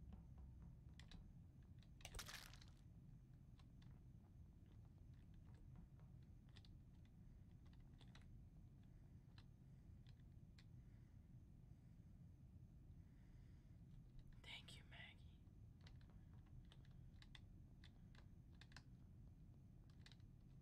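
Soft footsteps patter on a hard floor.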